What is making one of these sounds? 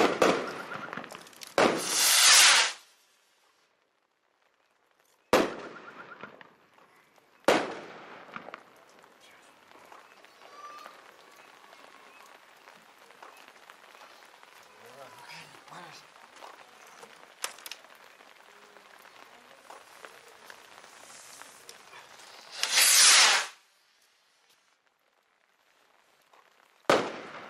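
Loud bangs go off close by, each with a rushing hiss.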